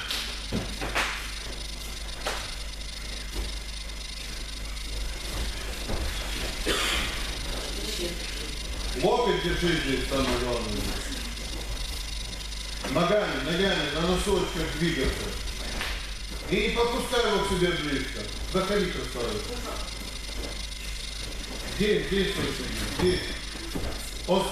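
Bare feet thump and shuffle on a padded mat in an echoing hall.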